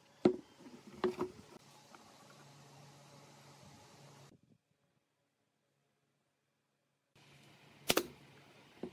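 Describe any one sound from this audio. Wooden boards knock against a wooden tabletop.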